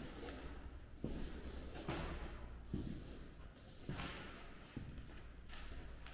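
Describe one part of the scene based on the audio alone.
Chalk scratches on a blackboard.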